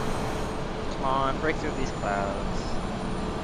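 A young man speaks briefly through a headset microphone.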